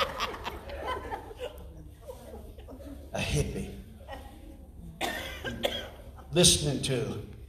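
An elderly man speaks into a microphone over loudspeakers in an echoing hall.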